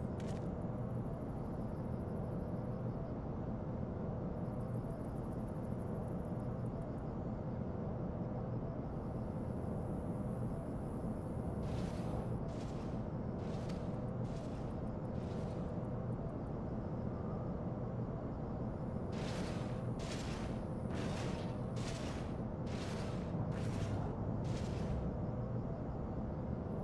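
A low, steady hum drones throughout.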